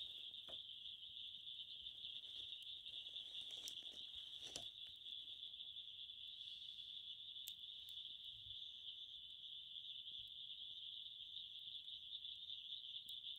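A wood fire crackles and pops in a stove.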